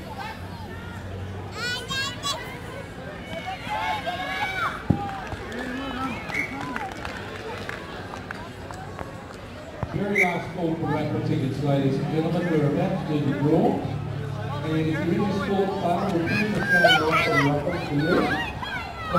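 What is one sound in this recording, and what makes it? Young players shout and call out across an open field outdoors.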